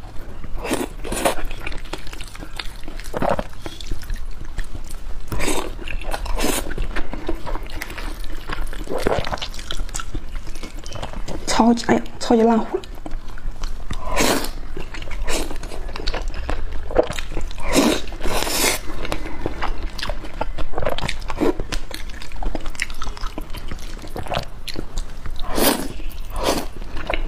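A young woman chews and slurps food loudly close to a microphone.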